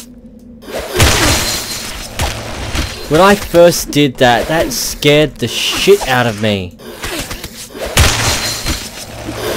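Ice crystals burst up with a sharp crackling rush.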